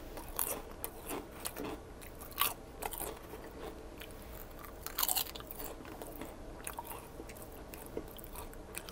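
Chips rustle and crackle in a bowl as fingers pick through them.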